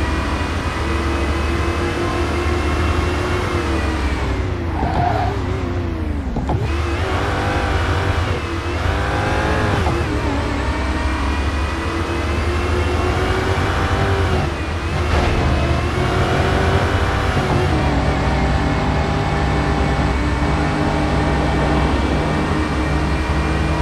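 A supercharged V8 sports car engine roars at high revs.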